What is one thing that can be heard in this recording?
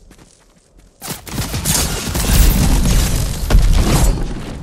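Wind rushes loudly past during a fast glide through the air.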